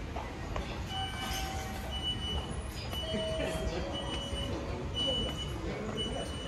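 Ticket gates chime with short electronic beeps.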